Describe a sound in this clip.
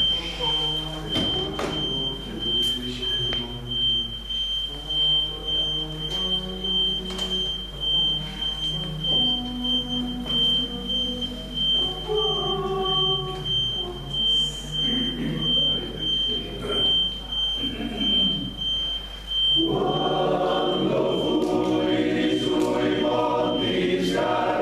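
A men's choir sings in harmony in a room with some echo.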